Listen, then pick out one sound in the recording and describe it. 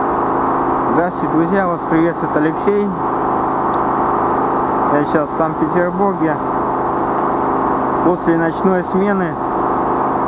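A man speaks calmly and close to the microphone, outdoors.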